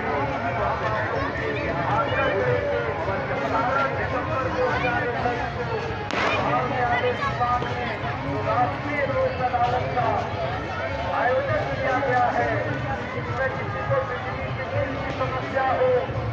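A large crowd chatters and calls out all around, outdoors.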